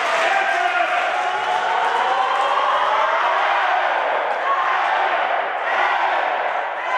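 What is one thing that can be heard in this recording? A crowd cheers loudly in a large echoing hall.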